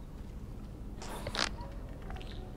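A springy whoosh sounds as a figure bounces off a slick surface.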